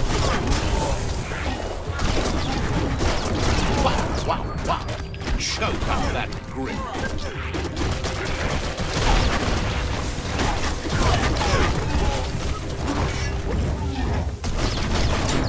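Heavy blows and crashes thud during a fight.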